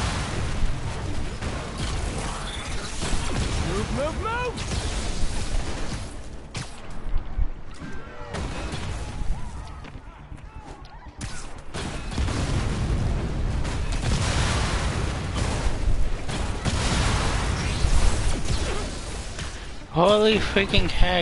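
Wind rushes past during fast swinging.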